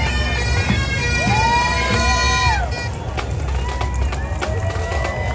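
Bagpipes play a loud, droning tune nearby.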